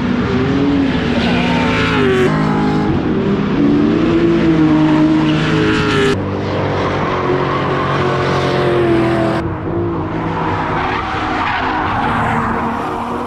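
Car tyres screech on asphalt.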